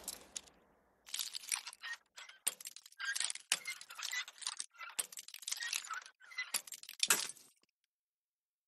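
A bobby pin and a screwdriver scrape and click inside a metal lock.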